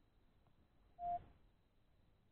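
A smartwatch gives a short beep.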